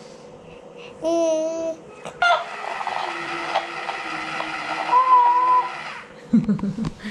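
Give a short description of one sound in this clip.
A toy plays a high, warbling electronic tune.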